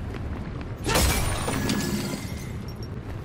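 Crystals shatter with a loud, ringing crash.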